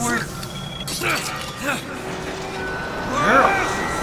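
A metal hook grinds and rattles along a rail.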